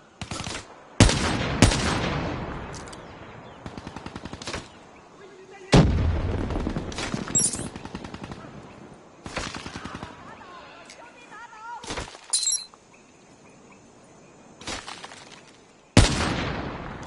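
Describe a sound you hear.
Sniper rifle shots crack loudly and echo away.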